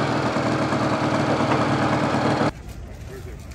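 A motorcycle engine idles with a low steady rumble.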